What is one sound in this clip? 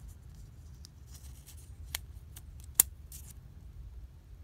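Paper backing crinkles and peels off a sticker.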